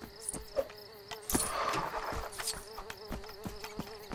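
Small plastic pieces clink and jingle as they are picked up.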